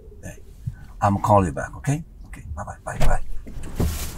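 A man talks on a phone close by.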